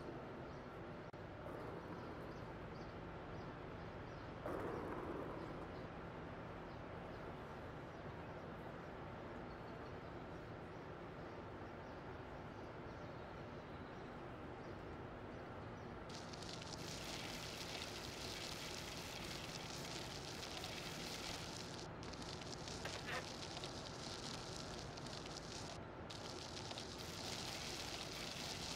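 Small plastic wheels rattle over paving stones.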